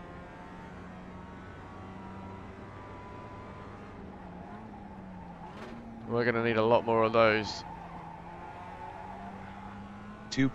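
A racing car engine drones steadily as it is driven.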